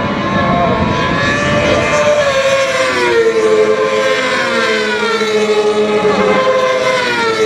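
Racing motorcycle engines scream as the bikes speed past, rising and falling in pitch.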